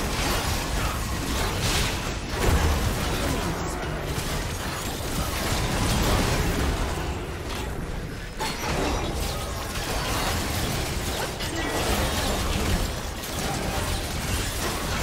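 Game spell effects and attacks crackle and burst in quick succession.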